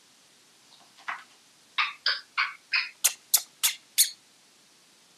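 A parrot whistles in short, sharp repeated calls.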